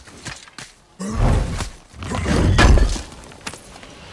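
A heavy axe whooshes and lands with deep booming thuds.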